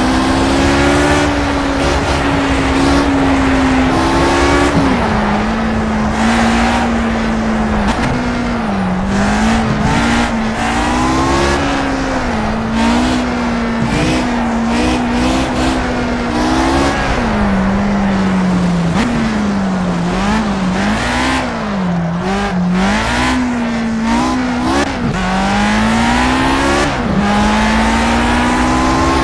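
A racing car engine roars loudly, rising and falling in pitch.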